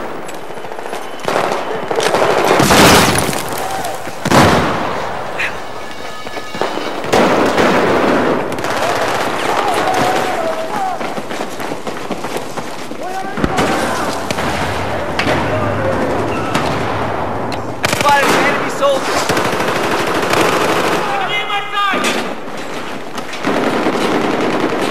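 Gunfire crackles in rapid bursts, with shots echoing.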